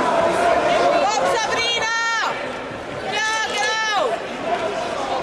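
Voices in the crowd shout loudly in long cries.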